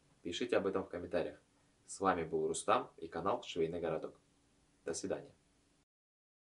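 A young man talks calmly and closely into a microphone.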